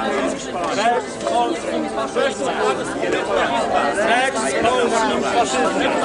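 A crowd of men and women talks and shouts over one another outdoors.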